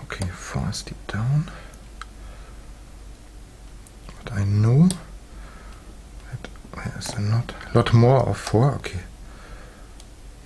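Metal picks scrape and click softly inside a lock.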